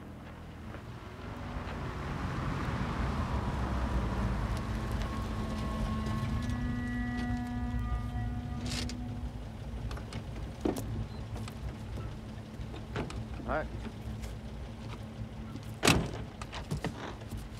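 A car engine runs and rumbles as the car drives up and idles.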